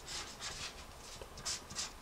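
A marker scratches softly across paper.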